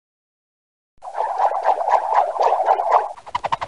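A wrench ratchets rapidly.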